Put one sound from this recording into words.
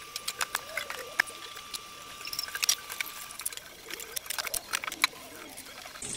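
Dishes clink and clatter in a metal sink.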